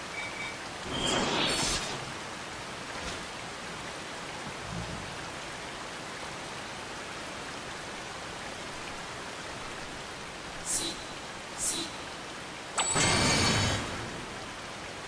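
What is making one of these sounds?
Magic spells whoosh and shimmer in a game fight.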